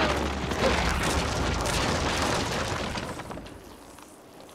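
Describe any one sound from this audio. Explosions boom and rumble loudly, then fade away.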